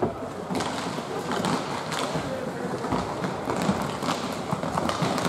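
Hockey sticks clack against a puck in a large echoing rink.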